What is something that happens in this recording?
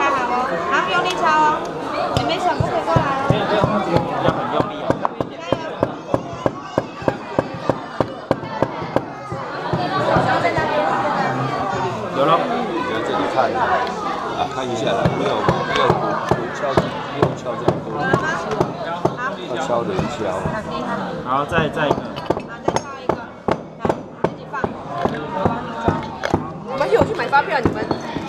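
A crowd of adults and children chatters close by.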